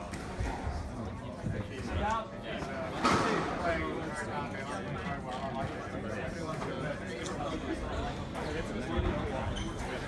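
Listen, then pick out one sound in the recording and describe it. A squash ball smacks against a racket and the wall with a sharp echo.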